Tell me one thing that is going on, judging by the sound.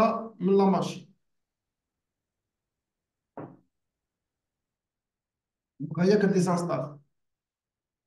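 A man speaks in short bursts, close to a microphone.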